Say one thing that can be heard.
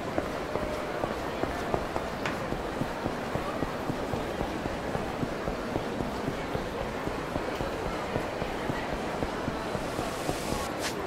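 Quick footsteps run on hard pavement.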